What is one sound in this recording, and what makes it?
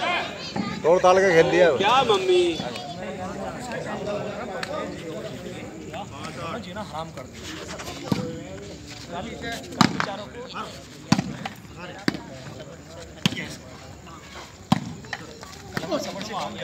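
Young men shout and call out nearby, outdoors.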